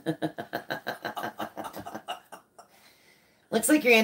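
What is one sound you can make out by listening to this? An older man laughs.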